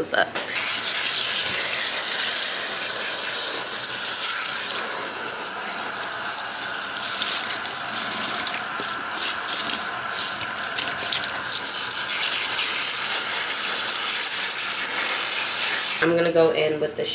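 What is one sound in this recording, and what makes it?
Water runs and splashes steadily from a tap.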